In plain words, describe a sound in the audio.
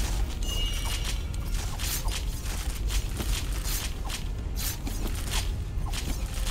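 Blades strike and slash against a huge beast again and again.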